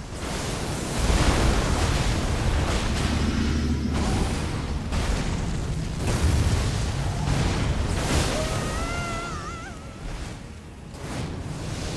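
Crackling lightning bursts and booms loudly.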